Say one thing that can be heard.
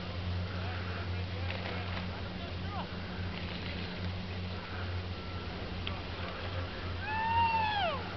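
Wind blows with a low steady rumble outdoors.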